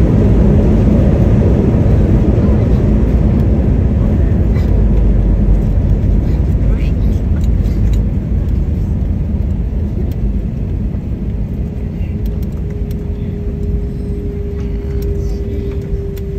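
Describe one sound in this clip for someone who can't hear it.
A jet plane's engines rumble loudly inside the cabin as it taxis.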